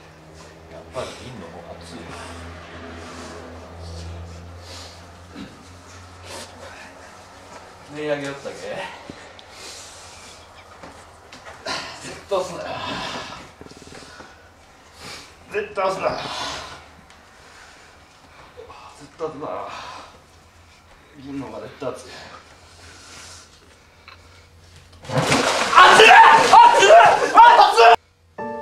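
Young men talk and laugh nearby in a room with a slight echo.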